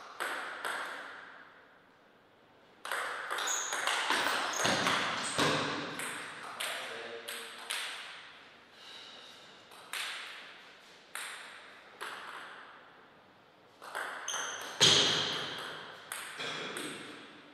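A table tennis ball clicks sharply back and forth on paddles and the table in a reverberant hall.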